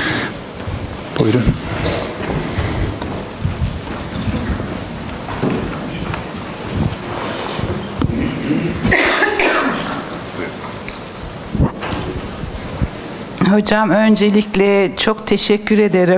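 A man speaks steadily through a microphone in a large room.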